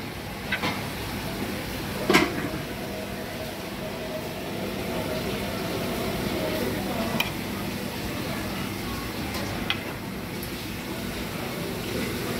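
Metal tongs clink against a metal tray.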